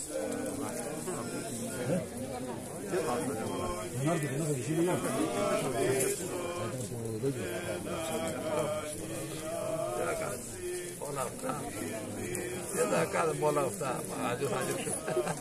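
A crowd of men and women chatter all around, close by, outdoors.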